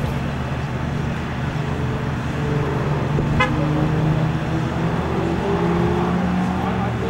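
A sports car engine idles nearby with a low, steady rumble.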